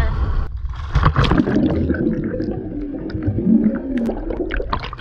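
Bubbles rush and gurgle underwater.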